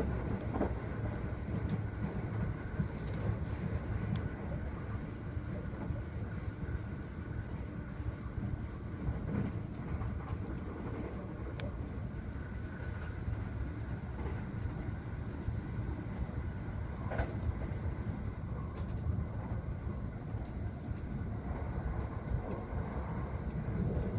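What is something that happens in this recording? Train wheels click over rail joints now and then.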